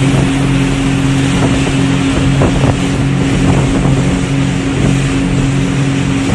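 Water rushes and splashes against the side of a moving boat.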